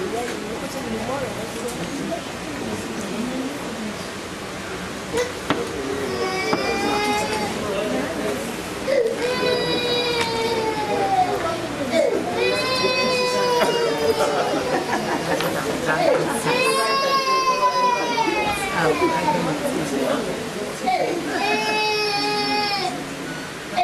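Men and women chatter quietly in the background.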